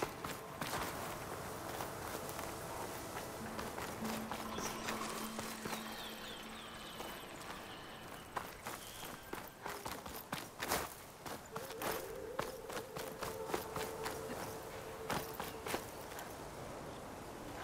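Footsteps crunch on dirt and grass as a figure runs.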